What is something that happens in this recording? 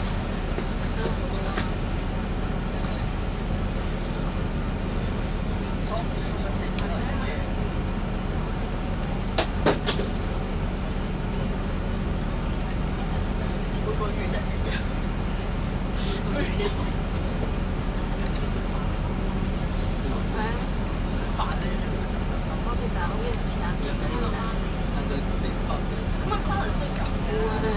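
A bus engine idles with a steady low rumble.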